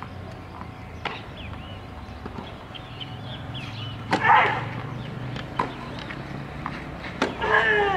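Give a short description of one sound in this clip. A tennis racket strikes a ball outdoors.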